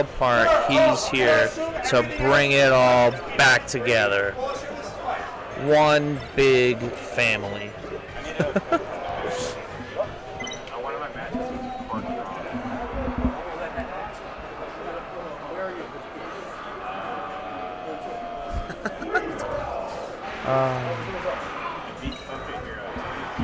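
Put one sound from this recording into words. Young men shout and talk excitedly close to a microphone.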